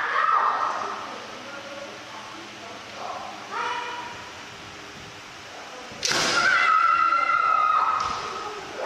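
Men shout sharp, drawn-out cries that echo through a large hall.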